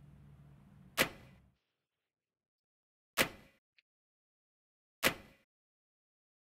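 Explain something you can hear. Short whooshing menu sounds sweep by as selections are made.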